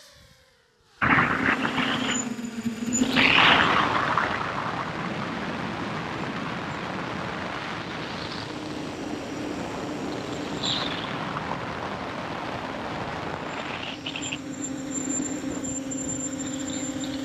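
Small drone motors buzz and whine steadily.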